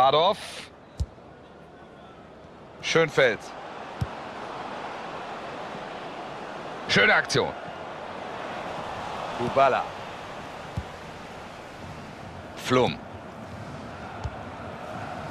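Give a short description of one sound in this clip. A football thumps when kicked.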